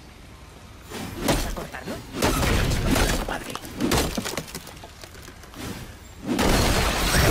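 An axe strikes stone with heavy thuds.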